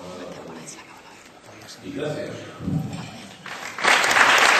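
An elderly man speaks into a microphone in a large hall.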